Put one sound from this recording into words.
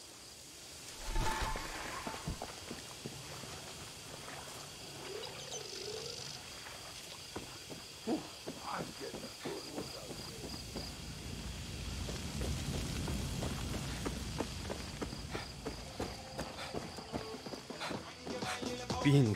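Footsteps crunch on the ground at a steady walking pace.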